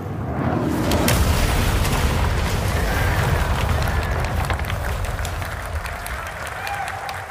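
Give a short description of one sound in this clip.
Debris clatters and splashes down into water.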